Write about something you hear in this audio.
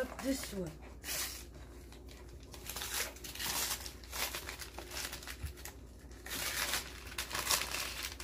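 Wrapping paper rustles and tears as a boy opens a gift.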